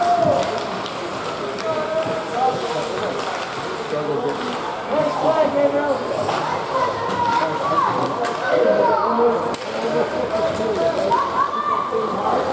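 Spectators cheer and shout in a large echoing rink.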